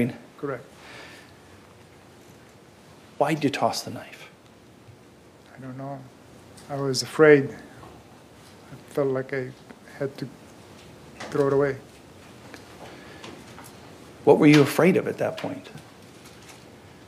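A middle-aged man speaks slowly and haltingly into a microphone, with long pauses.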